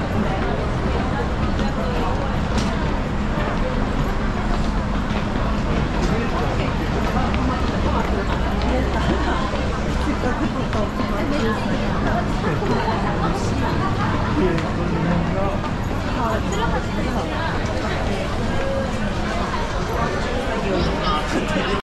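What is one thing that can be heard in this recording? Footsteps shuffle and tap on a hard floor.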